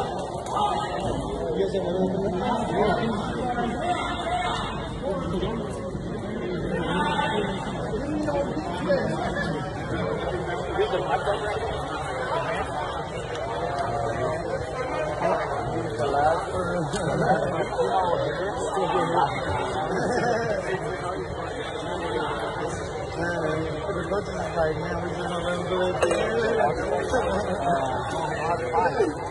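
Spectators chatter and call out in a large echoing hall.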